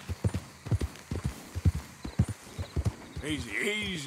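Horse hooves thud quickly on soft ground.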